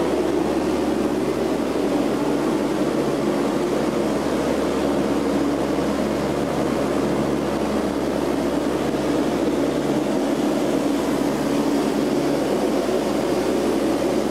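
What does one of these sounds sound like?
Aircraft engines drone steadily inside the cabin.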